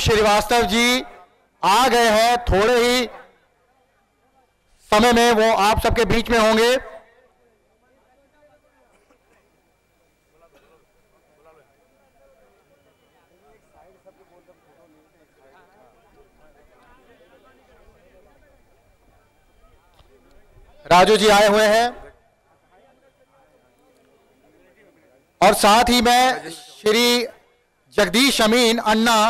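A man speaks loudly into a microphone through loudspeakers, in short bursts with pauses.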